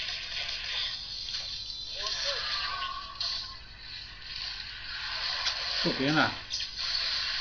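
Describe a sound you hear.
Video game sound effects whoosh and crash during a fight.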